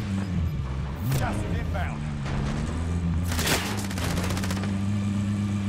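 A vehicle bumps and crashes against an obstacle.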